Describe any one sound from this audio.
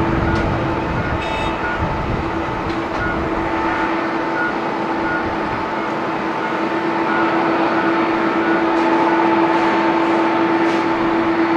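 Jet engines whine and roar steadily as an airliner taxis nearby.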